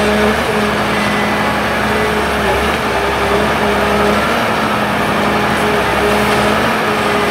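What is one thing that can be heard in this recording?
A forestry machine's diesel engine hums loudly and steadily nearby.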